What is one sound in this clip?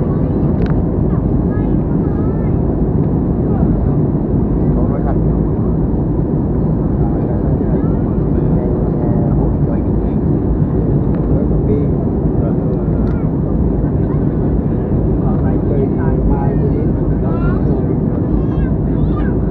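A jet engine roars steadily inside an airliner cabin in flight.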